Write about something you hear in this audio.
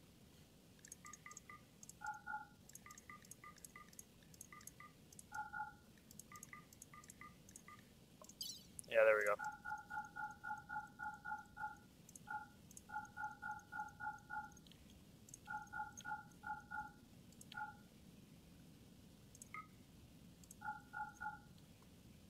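Short, pitched video game menu blips sound as items are ticked off one after another.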